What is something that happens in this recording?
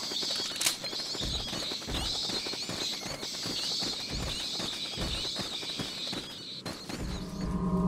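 Footsteps crunch on soft ground.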